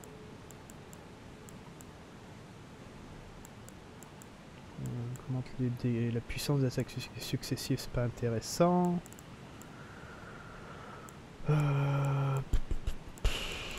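Soft menu clicks tick as a cursor moves through a list.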